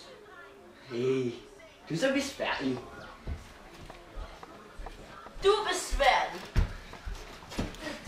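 A teenage boy talks close by.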